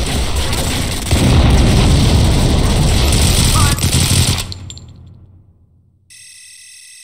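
Gunfire and game action rumble loudly, then fade away.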